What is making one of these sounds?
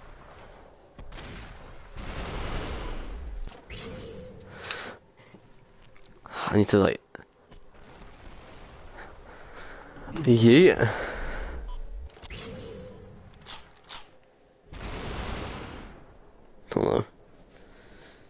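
Gunshots crack from a video game.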